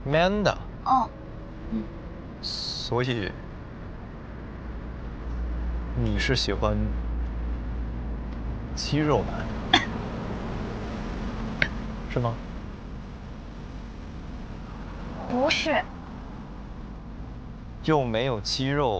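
A young woman speaks in a close, soft voice.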